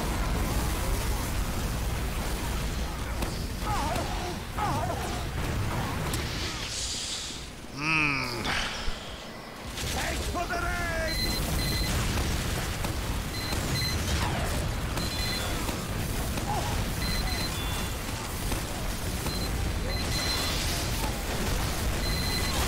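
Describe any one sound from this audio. Guns fire and explosions boom in a game.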